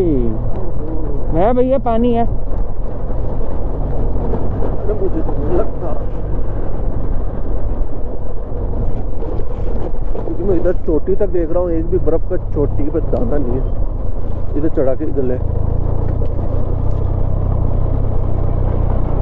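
Tyres crunch over rough gravel.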